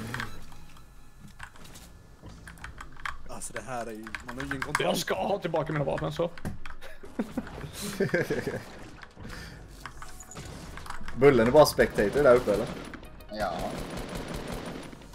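Gunshots and building clicks from a video game sound rapidly.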